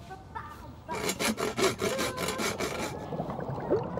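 A hand saw rasps quickly back and forth through metal.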